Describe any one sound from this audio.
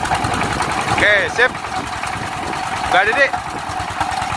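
A young man speaks briefly in a raised voice over the engine.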